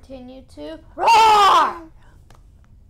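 A boy shouts with excitement.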